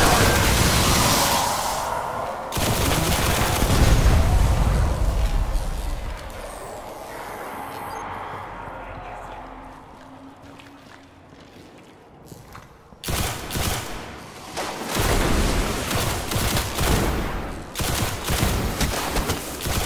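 Electricity crackles and zaps loudly.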